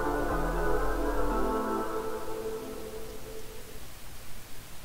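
Song music plays through speakers and fades out.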